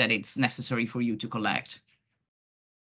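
A man talks cheerfully over an online call.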